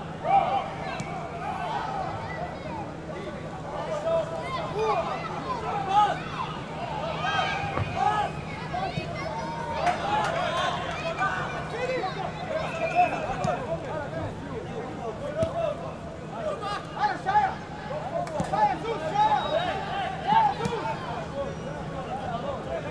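A crowd of spectators chatters and calls out across an open-air ground.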